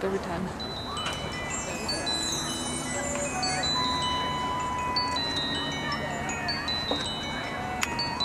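A trumpet plays a solo.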